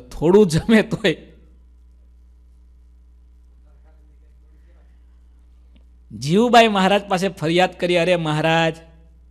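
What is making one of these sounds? A man speaks calmly into a close microphone, pausing in between.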